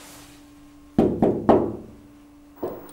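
A man knocks on a door.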